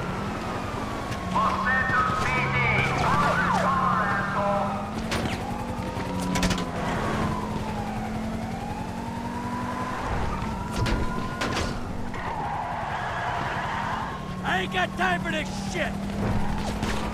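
Police sirens wail and rise and fall nearby.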